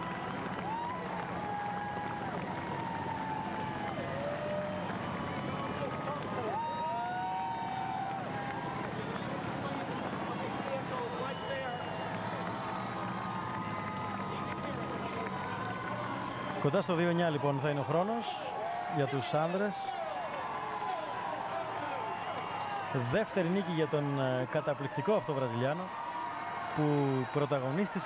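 A large crowd cheers and applauds steadily outdoors.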